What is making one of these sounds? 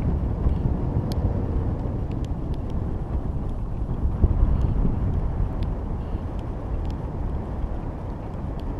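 Wind rumbles steadily and gusts into a microphone.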